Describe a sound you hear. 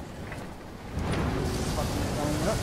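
A heavy metal door grinds and scrapes as it is pushed open.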